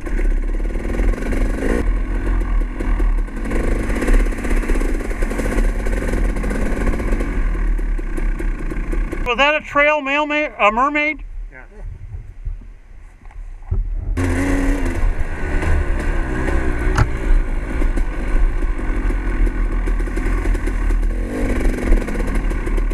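A dirt bike engine roars and revs close by.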